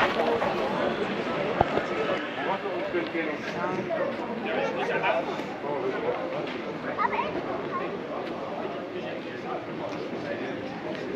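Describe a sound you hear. Many voices chatter and murmur around a large, echoing hall.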